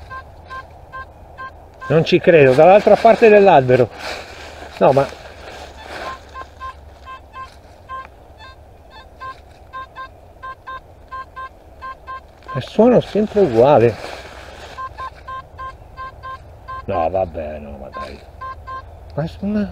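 A metal detector beeps in a steady, fast rhythm.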